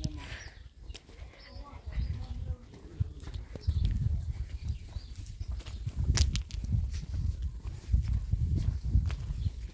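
Footsteps crunch on dirt and gravel.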